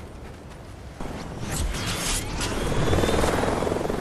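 A glider flaps and rushes through the air.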